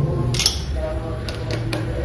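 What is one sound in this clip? A screwdriver scrapes against a metal screw.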